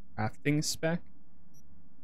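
A young man speaks briefly and close into a microphone.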